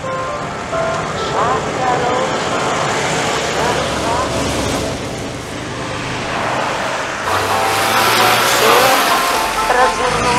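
A car engine hums as the car drives slowly past on a street.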